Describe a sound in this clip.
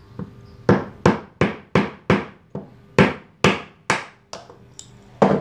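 Wooden blocks knock sharply together in quick succession.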